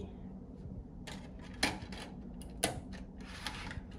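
A disc clatters into a drive tray.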